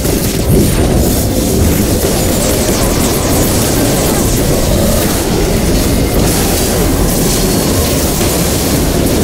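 Magic spells whoosh and crackle during a fast fight.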